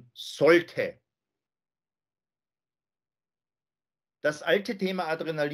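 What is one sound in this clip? A middle-aged man speaks calmly into a microphone over an online call.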